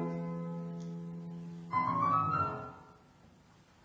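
A choir sings together in a hall.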